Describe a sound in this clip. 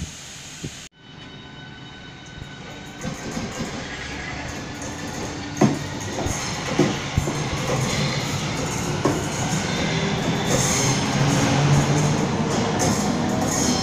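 An electric train pulls away with a rising whine and rushing air.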